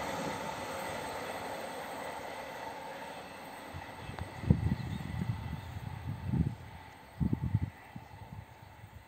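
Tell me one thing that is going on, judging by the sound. A train engine hums steadily in the distance.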